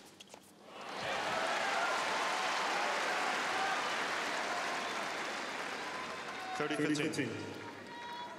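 A large crowd applauds and cheers.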